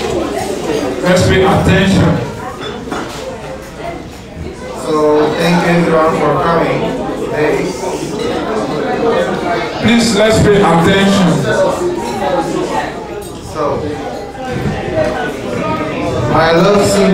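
A man speaks calmly through a microphone and loudspeakers, in a room with a slight echo.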